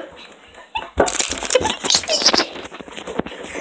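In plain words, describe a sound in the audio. A young girl laughs loudly close by.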